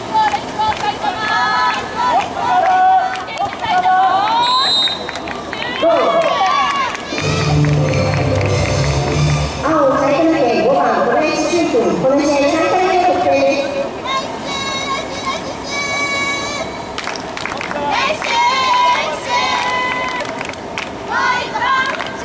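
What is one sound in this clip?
Spectators shout and cheer nearby outdoors.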